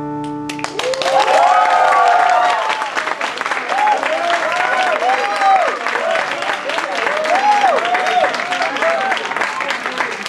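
An acoustic guitar is strummed quickly.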